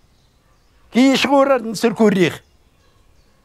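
An elderly man speaks loudly and firmly, close by.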